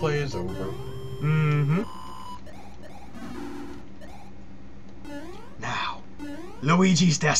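Retro electronic game music plays with bright, beeping tones.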